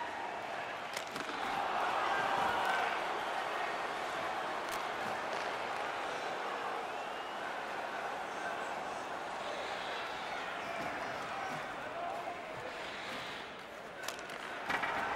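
A stick slaps a puck with a sharp crack.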